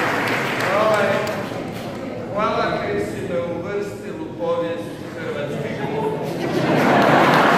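A man speaks into a microphone, heard through loudspeakers.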